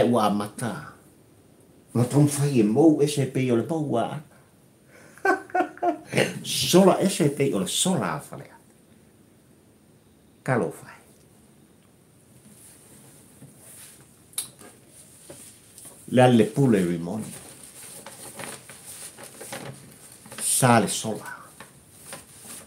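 An elderly man talks with animation close to a microphone, with pauses.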